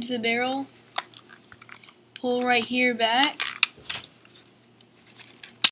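A pistol's metal parts click and clack as they are handled.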